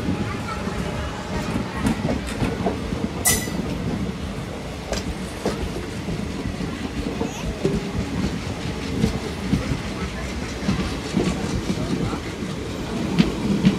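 Wheels clack rhythmically over rail joints.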